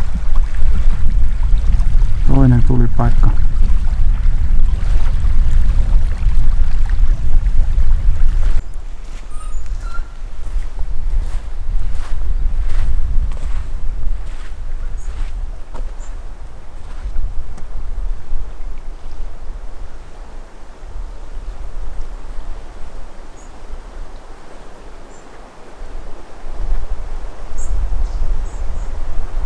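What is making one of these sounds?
Wind rumbles steadily outdoors, strongest at first.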